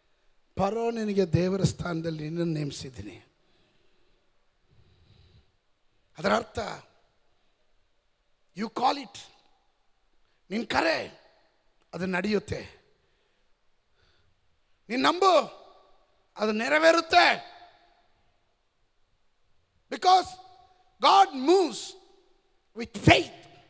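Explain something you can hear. A man speaks into a microphone with emphasis, in short bursts with pauses.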